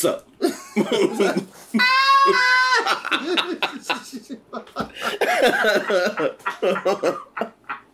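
A second man laughs loudly close to a microphone.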